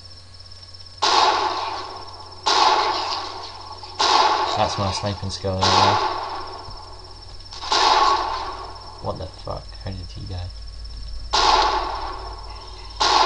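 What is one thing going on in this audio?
Rifles fire in loud, echoing bursts.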